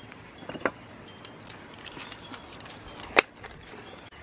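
A blade scrapes and taps against hard concrete.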